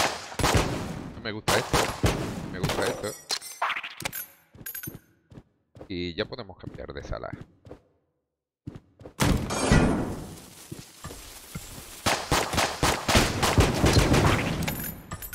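A pistol fires quick shots.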